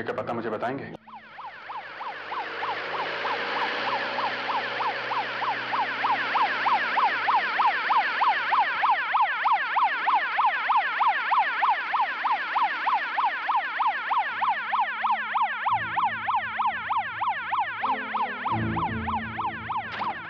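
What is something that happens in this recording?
A siren wails rapidly and grows louder as a vehicle approaches.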